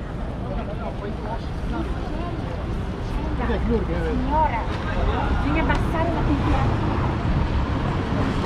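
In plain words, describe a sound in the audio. Men and women chat nearby as they pass on the pavement.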